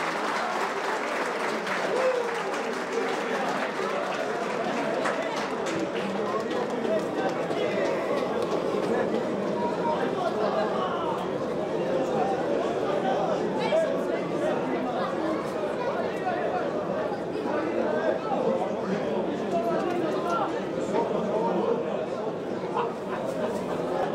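Young men shout and talk excitedly outdoors.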